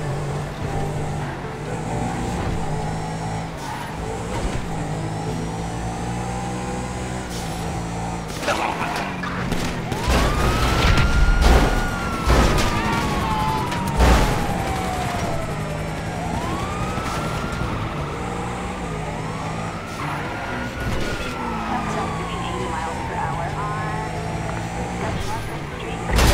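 A car engine hums steadily as the car speeds along.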